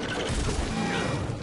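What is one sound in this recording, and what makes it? Blades clash and thud in a fight.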